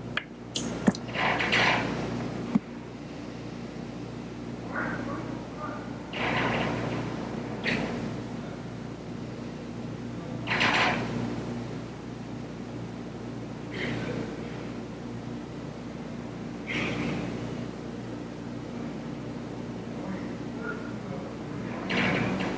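People breathe slowly and deeply in and out.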